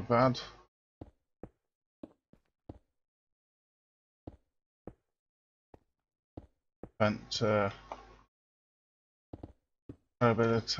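Footsteps tap on stone at an even pace.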